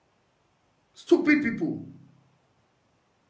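A young man speaks briefly and calmly, close by.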